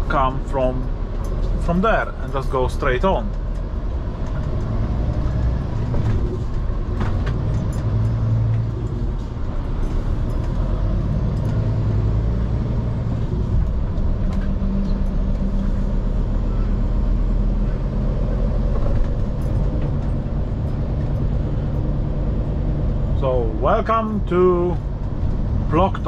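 A truck engine rumbles steadily from inside the cab.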